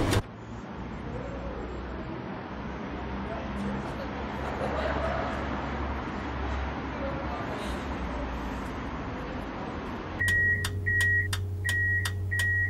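A tram's motor hums steadily while it stands idle.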